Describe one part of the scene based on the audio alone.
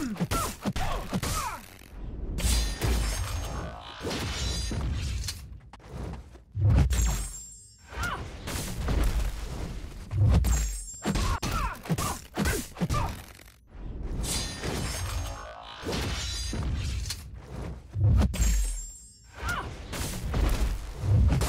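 Electric zaps crackle and buzz.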